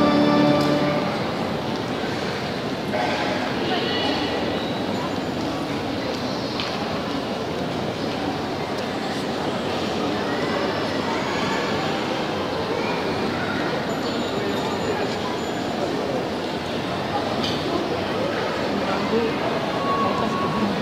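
A large crowd murmurs in an echoing hall.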